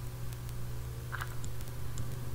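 A block of dirt breaks with a crumbling crunch.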